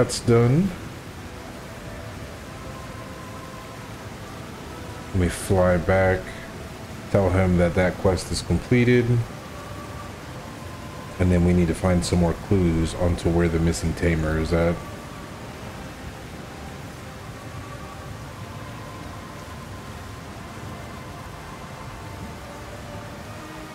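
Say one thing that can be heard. Water splashes softly as a swimmer strokes through it.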